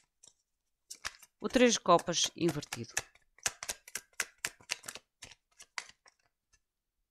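Playing cards riffle and shuffle in someone's hands.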